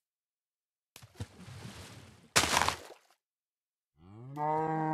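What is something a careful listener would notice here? Water splashes as something wades through it.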